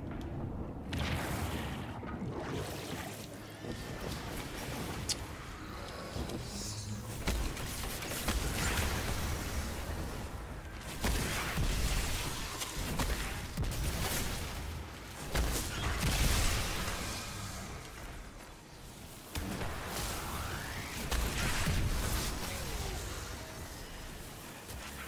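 Gunfire and crackling energy blasts boom repeatedly.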